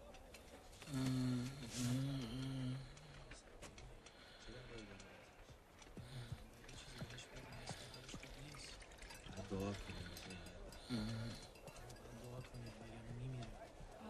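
A man speaks calmly and low nearby.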